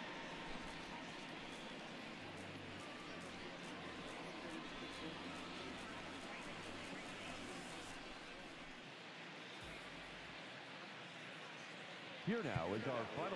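A stadium crowd cheers and murmurs in the distance.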